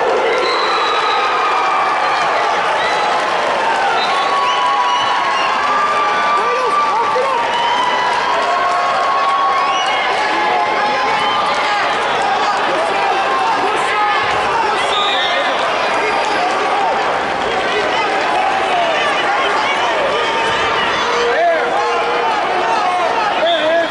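Spectators shout encouragement from close by.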